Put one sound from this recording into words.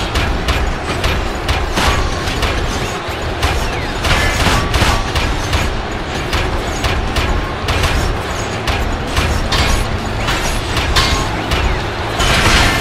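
Heavy metal blows clang and thud in quick succession.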